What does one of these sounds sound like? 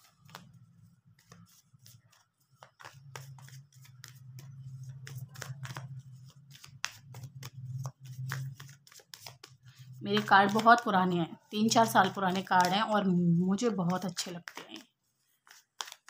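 Paper banknotes rustle and flick as they are counted by hand.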